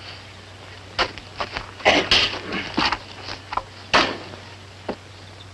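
A pickaxe strikes rocky ground with sharp knocks.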